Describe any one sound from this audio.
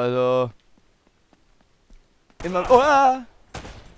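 A pistol fires a single shot.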